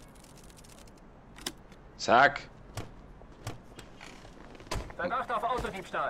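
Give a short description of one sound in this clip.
A car door opens and thuds shut.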